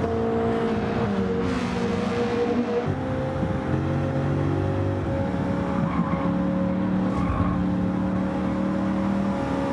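Racing car engines roar at high revs, shifting pitch as gears change.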